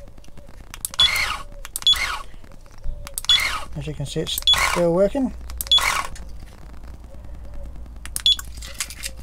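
An electronic device beeps in short, high tones.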